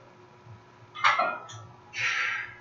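Metal weight plates clank as a barbell is lifted off the floor.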